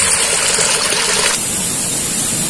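Water trickles and splashes in a small stream.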